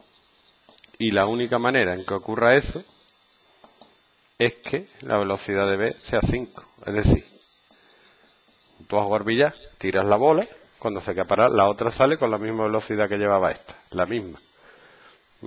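A man talks calmly and clearly close to a microphone.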